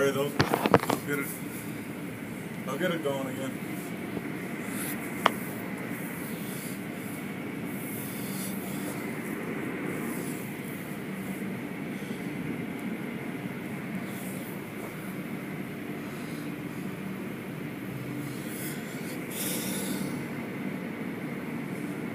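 Car wash brushes rumble and whir steadily.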